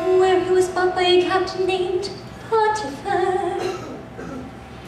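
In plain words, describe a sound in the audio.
A young woman sings loudly in a large hall.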